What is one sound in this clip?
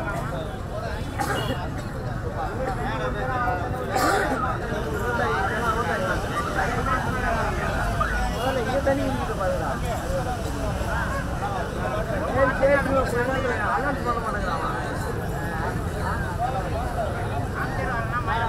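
A middle-aged man speaks forcefully into a microphone over a loudspeaker.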